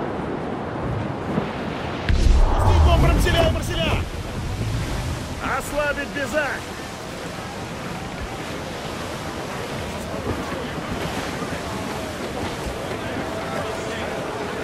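Wind blows through a ship's sails and rigging.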